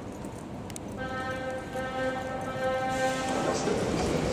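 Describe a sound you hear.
A door warning chime beeps steadily.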